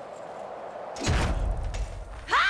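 A bicycle lands hard with a heavy thud.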